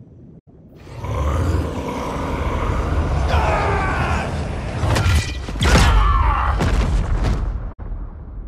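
A deep energy blast rumbles and crackles.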